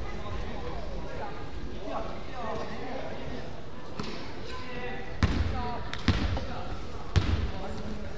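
Young players shout and call out across the echoing hall.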